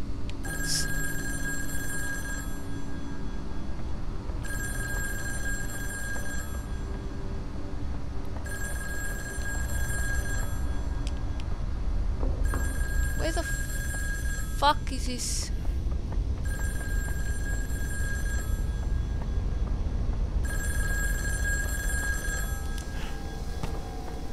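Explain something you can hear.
A young man talks quietly and close into a microphone.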